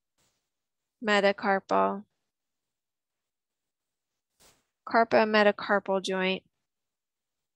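A woman speaks calmly through a microphone, in short phrases with pauses.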